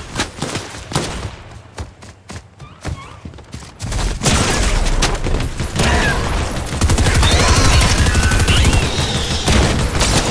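Rapid gunshots ring out in a video game.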